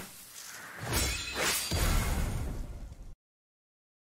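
A bright shimmering whoosh swells and fades.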